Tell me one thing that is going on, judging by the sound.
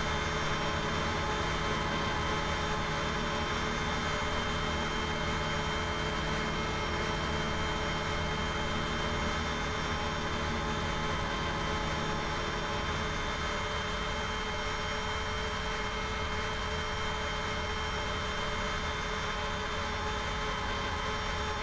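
Jet engines whine steadily as an airliner taxis.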